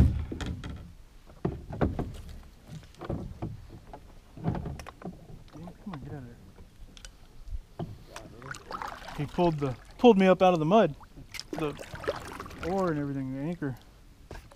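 A paddle splashes and drips in the water.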